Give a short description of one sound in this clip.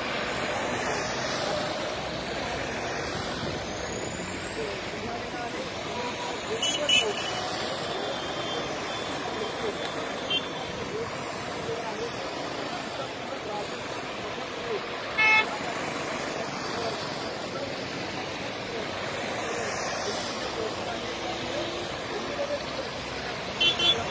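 Vehicles drive past steadily on a road outdoors.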